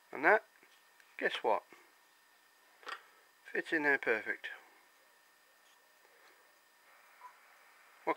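Metal parts click and clunk as they are fitted onto a metal plate.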